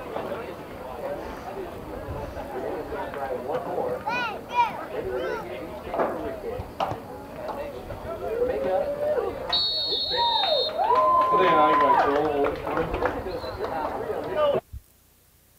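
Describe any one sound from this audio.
Men and boys shout and call out across an open field.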